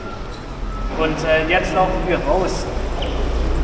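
A young man speaks with animation in a large echoing hall.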